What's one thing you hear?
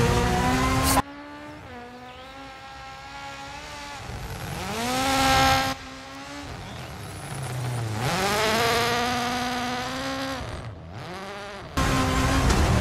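A rally car engine roars past at a distance, rising and fading.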